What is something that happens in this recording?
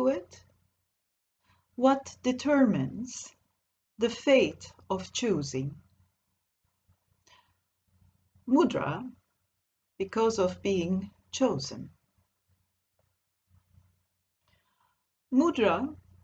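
A woman speaks calmly in short phrases into a computer microphone, with pauses.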